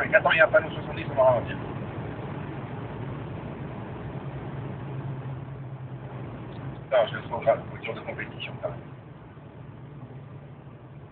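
A car engine hums steadily while driving at speed.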